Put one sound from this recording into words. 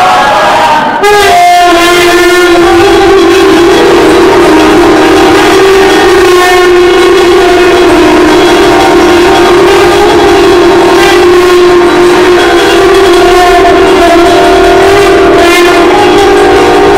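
A crowd of men and women sing together in a loud, echoing hall.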